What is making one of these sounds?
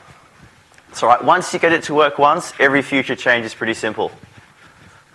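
A man speaks out loud to a room, heard as if through a microphone.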